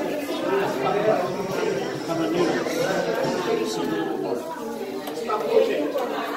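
Serving spoons scrape and clink against plates.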